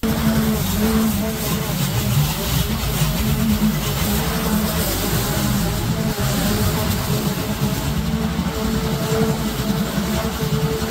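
A lawn mower's blades cut through thick grass.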